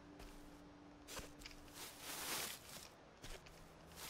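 Tall grass rustles as someone walks through it.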